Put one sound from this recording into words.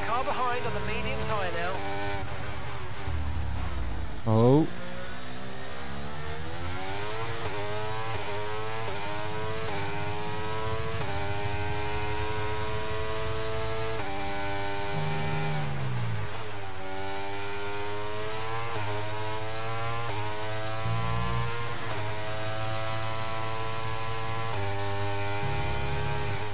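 A racing car engine screams at high revs, climbing in pitch and dropping with each gear change.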